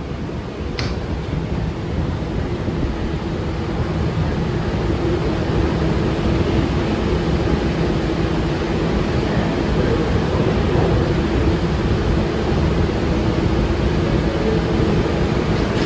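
A subway train rumbles steadily as it runs through a tunnel.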